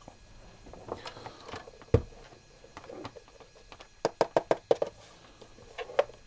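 A plastic casing knocks and clicks as it is handled.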